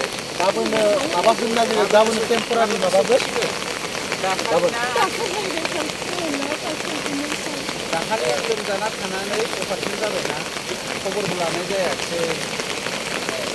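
A man speaks into a microphone outdoors, reporting steadily.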